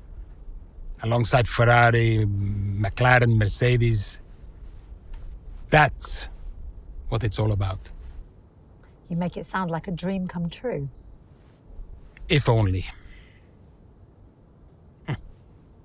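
A middle-aged man speaks close to a microphone in an emotional, halting voice.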